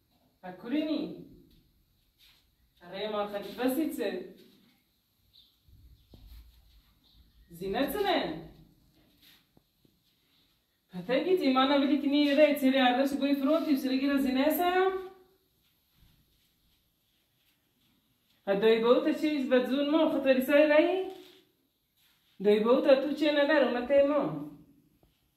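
A young woman talks on a phone close by, in short bursts with pauses.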